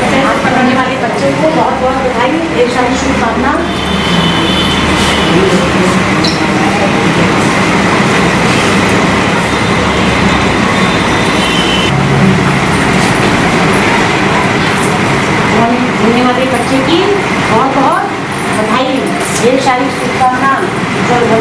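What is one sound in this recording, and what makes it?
Several women chatter and talk over one another nearby.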